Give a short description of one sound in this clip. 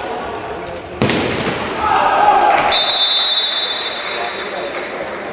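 Spectators murmur and shout in a large echoing hall.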